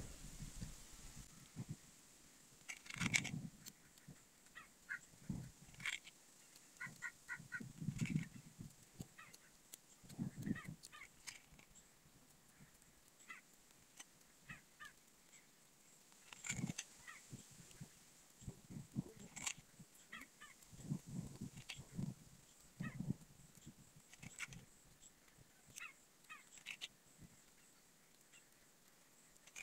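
Metal tongs click and scrape against a small hard object.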